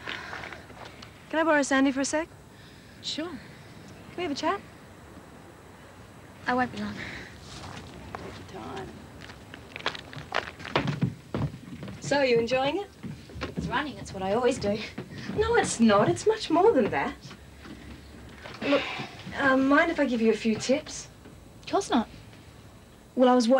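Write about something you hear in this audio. A young woman in a robe speaks calmly.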